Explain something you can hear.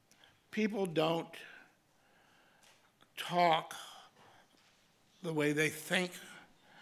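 An elderly man speaks slowly and expressively into a microphone, in bursts with pauses.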